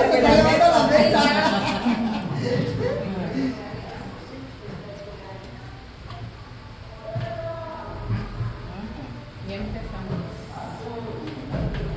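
Dough is pressed and thumped softly on a table.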